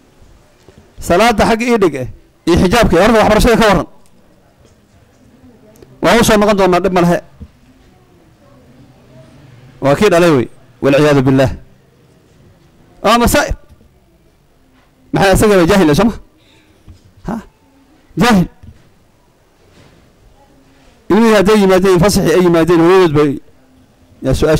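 A middle-aged man speaks slowly and solemnly into a microphone, in short bursts with pauses.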